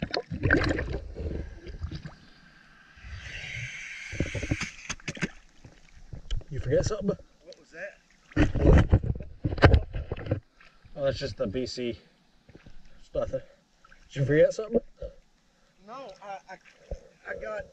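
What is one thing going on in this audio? Water splashes and laps close by.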